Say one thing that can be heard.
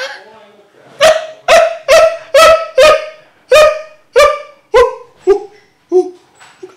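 A young man laughs loudly in repeated bursts close by.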